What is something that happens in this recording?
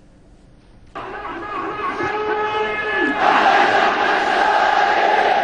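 A large crowd chants and roars outdoors.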